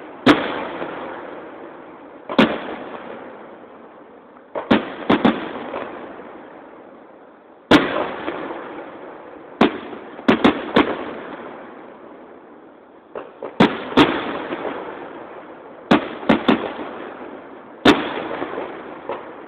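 Firework rockets whoosh up into the sky.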